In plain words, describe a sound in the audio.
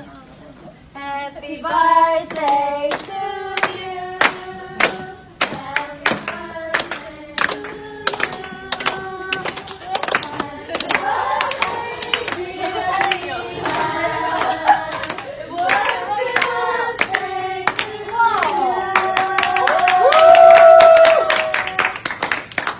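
A group of young women sing together.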